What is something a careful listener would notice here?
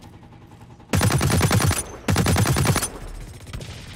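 A sniper rifle fires two loud blasts.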